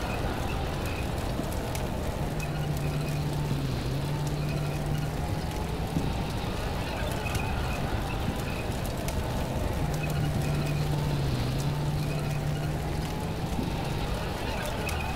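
A tank engine rumbles steadily close by.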